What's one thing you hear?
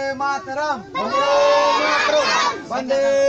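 A crowd of children chants loudly together.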